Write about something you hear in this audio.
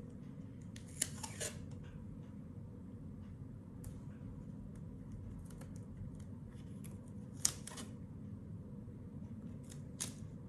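Small pieces of tape tap and click against a notebook.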